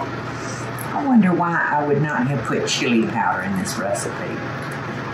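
An older woman talks calmly close by.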